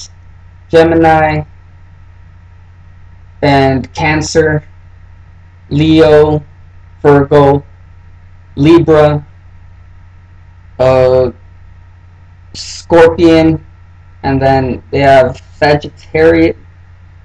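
A young man speaks calmly close by, in short bursts with pauses.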